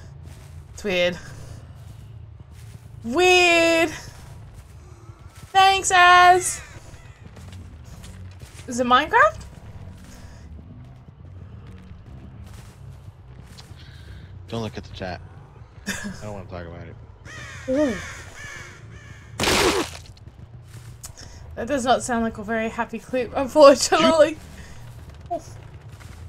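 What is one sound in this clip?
A woman speaks close to a microphone with animation, her voice rising in pitch at times.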